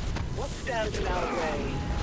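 Electric zaps crackle from laser towers.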